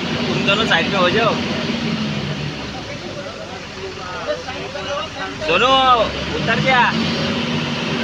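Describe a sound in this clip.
Men talk and call out with animation nearby.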